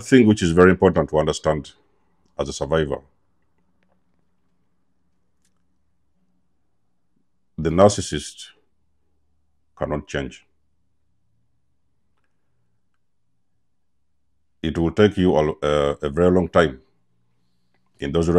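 A man speaks calmly and close to a clip-on microphone, with long pauses.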